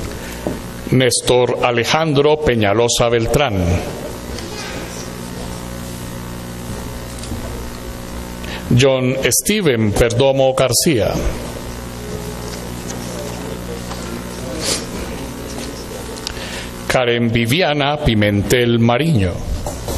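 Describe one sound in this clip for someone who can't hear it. A man speaks through a loudspeaker in an echoing hall, reading out in short bursts.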